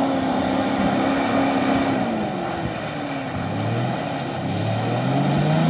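Water and mud splash under spinning tyres.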